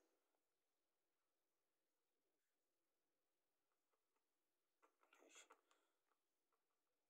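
A screwdriver turns a small screw with faint scraping.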